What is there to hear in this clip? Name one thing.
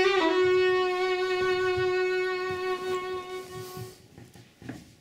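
A violin holds a long, ringing note that fades out.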